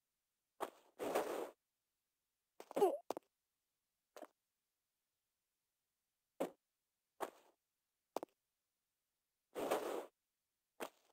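A young woman grunts with effort as she climbs and pulls herself up.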